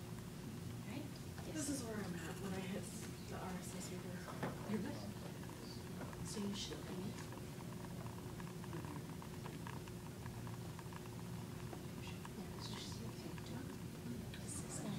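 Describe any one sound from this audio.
Several women murmur quietly in the distance.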